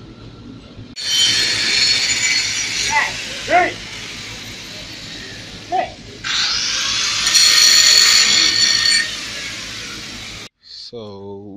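An angle grinder whines loudly as it cuts through metal.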